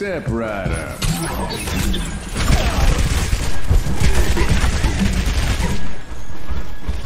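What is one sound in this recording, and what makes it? A heavy gun fires rapid bursts.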